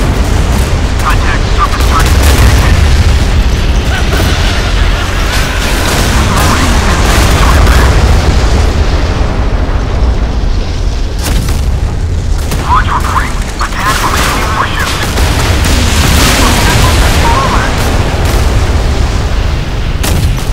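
Naval guns fire in rapid bursts.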